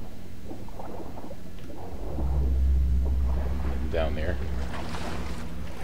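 Water splashes and sloshes as someone wades through it.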